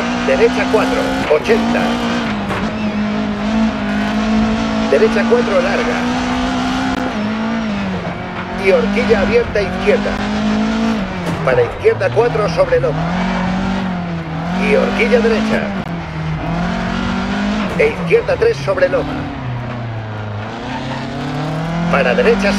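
A car engine roars steadily, rising and falling in pitch as the car changes gear and speed.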